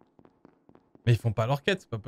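A man speaks loudly and animatedly into a close microphone.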